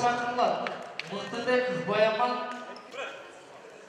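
A man shouts loudly nearby in a large echoing hall.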